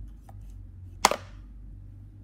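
A clapperboard snaps shut with a sharp clack.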